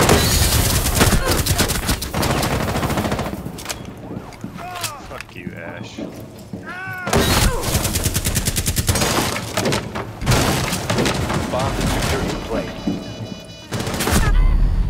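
Automatic gunfire rattles in rapid bursts, close by.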